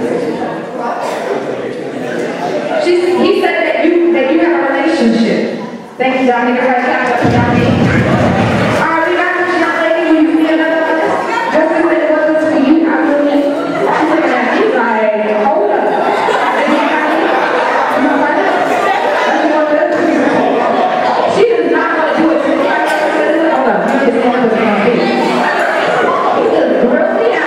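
A young man speaks loudly through a microphone into an echoing hall.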